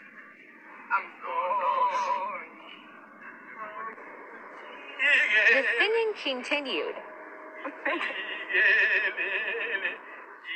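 Young women talk and laugh loudly with animation, close by.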